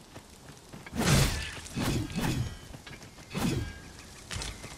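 Weapon blows land with heavy thumps.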